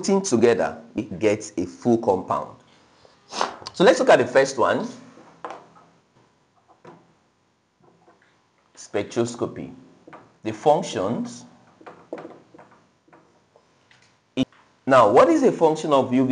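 A young man speaks calmly and clearly, as if teaching, close by.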